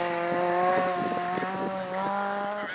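Gravel crunches and sprays under car tyres.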